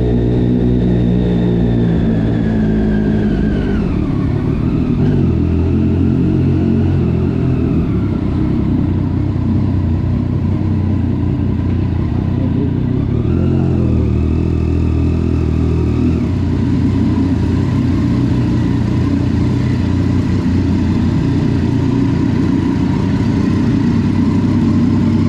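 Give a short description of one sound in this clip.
A motorcycle engine rumbles steadily up close, its pitch rising and falling with the throttle.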